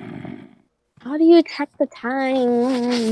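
A young girl cries out loudly in long, drawn-out wails close to a microphone.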